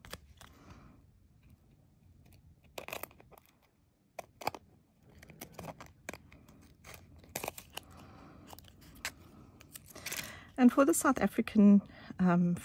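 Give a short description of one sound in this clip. Scissors snip through thin foil and card in short crisp cuts.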